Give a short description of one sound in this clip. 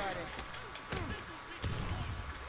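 Punches thud in a scuffle.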